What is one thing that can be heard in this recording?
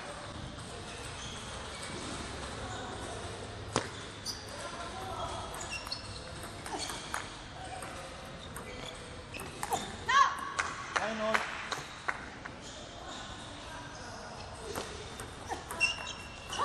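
A ball clicks sharply back and forth off paddles and a table.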